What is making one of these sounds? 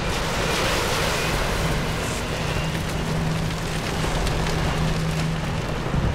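Fires crackle and roar nearby.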